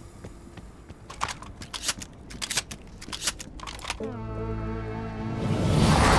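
A gun's metal parts click and clack as it is reloaded.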